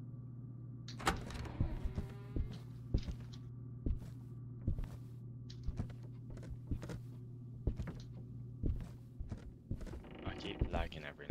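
Slow footsteps thud on a creaking wooden floor.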